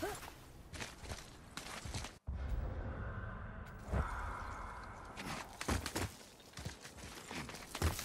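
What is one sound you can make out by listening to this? A climber's hands grip and scrape against stone.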